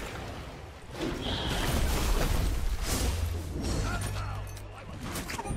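A magic blast whooshes and rumbles.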